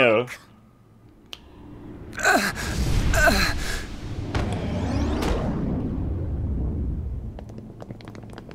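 A huge machine rumbles deeply and roars.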